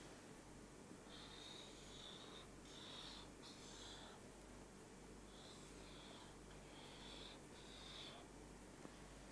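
A felt marker squeaks softly on paper.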